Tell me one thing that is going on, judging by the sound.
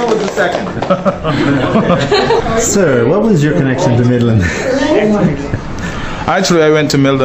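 Young men laugh in the room.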